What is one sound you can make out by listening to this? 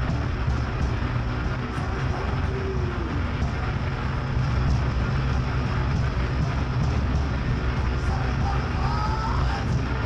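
A rock band plays loudly with heavy distorted electric guitars.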